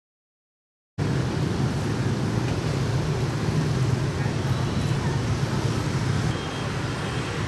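Motorbike engines drone and buzz in dense traffic.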